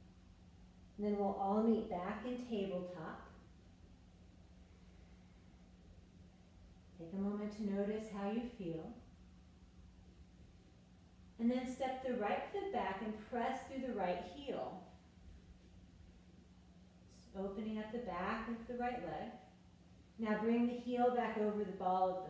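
A woman speaks calmly in short bursts.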